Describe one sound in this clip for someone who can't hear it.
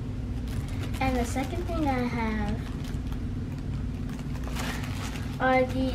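A young girl talks with excitement close by.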